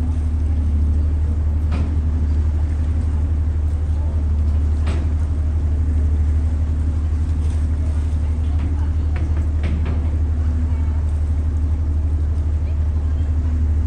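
Water sloshes against a pier.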